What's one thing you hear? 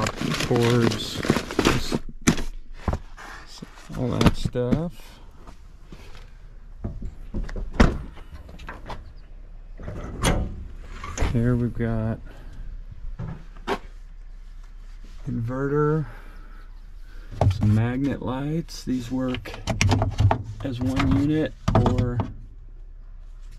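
Objects knock and rustle as they are handled.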